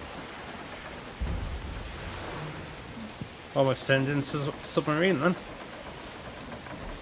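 Rough sea waves surge and crash against a ship's hull.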